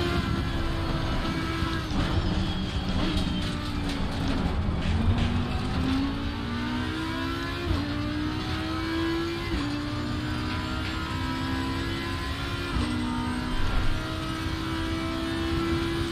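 A racing car engine roars, rising in pitch and dropping sharply with each gear change.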